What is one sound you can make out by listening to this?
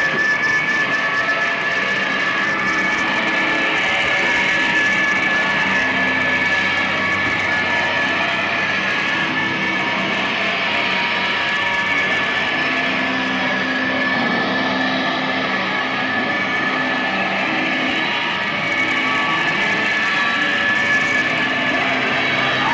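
A distorted electric guitar plays loudly with a noisy, droning feedback tone.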